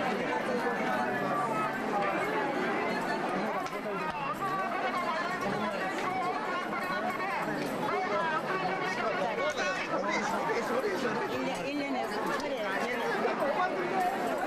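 A crowd of people chatter all around.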